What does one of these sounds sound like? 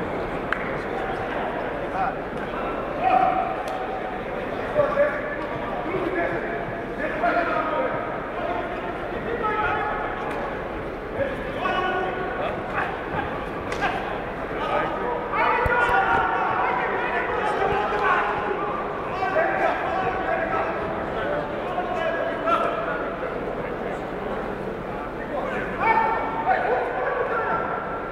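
A crowd of men shouts and cheers in a large echoing hall.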